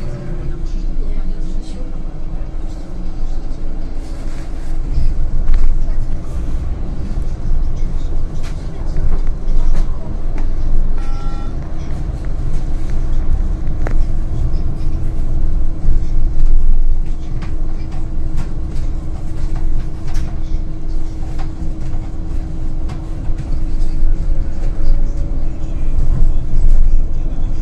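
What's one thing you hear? Loose parts of a bus rattle and clatter now and then.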